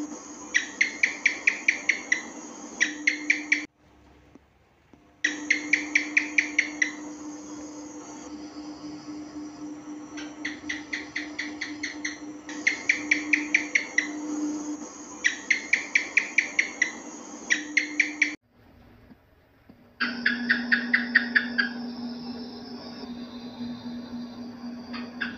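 A gecko chirps in rapid clicking bursts.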